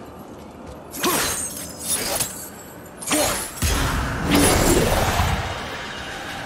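Metal chains rattle and clank.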